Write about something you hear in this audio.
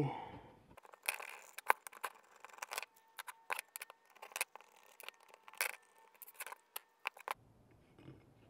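Metal parts click and clink as they are handled.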